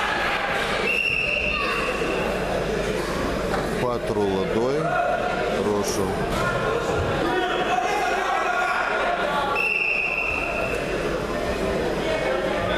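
A seated crowd murmurs and chatters in a large echoing hall.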